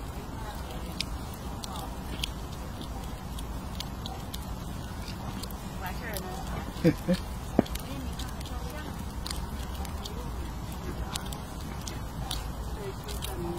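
A squirrel nibbles and crunches a nut close by.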